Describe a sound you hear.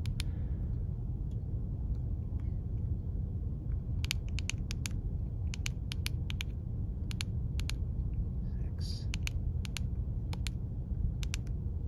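Fingers click the buttons of a handheld radio.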